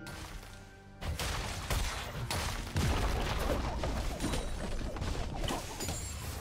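Magic blasts and weapon strikes crash and whoosh in a busy fight.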